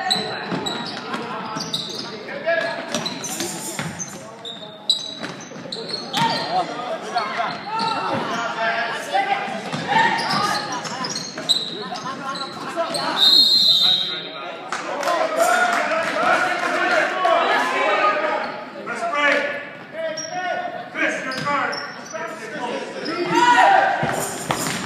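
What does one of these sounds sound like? Sneakers squeak on a hard floor in an echoing gym.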